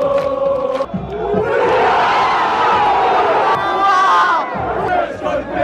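A crowd roars and cheers.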